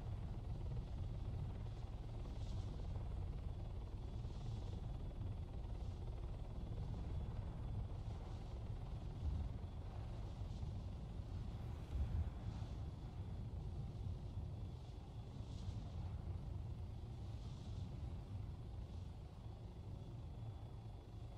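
A helicopter engine and rotor drone steadily and loudly from inside the cabin.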